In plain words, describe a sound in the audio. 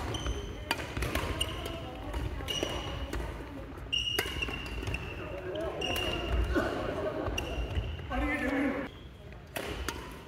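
Sports shoes squeak sharply on a wooden floor.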